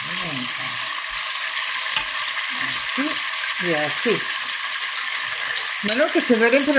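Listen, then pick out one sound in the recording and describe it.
Meat sizzles steadily in hot oil.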